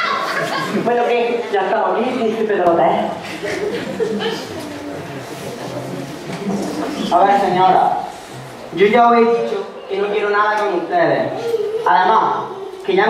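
A young man speaks with animation on a stage.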